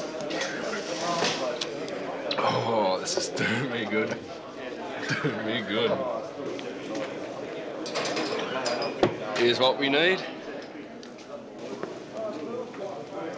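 A young man talks quietly up close.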